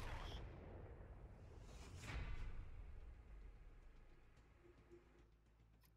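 A tank explodes with a deep booming rumble that fades.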